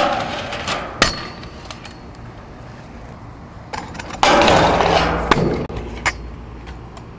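Scooter wheels land hard on concrete with a sharp clack.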